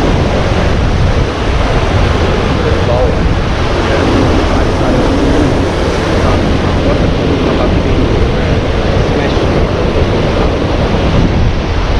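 Wind buffets loudly outdoors.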